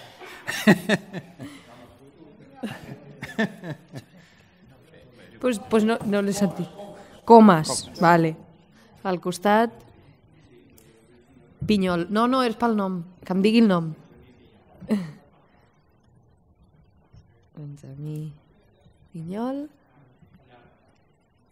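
Several men speak in turn through microphones in a large hall.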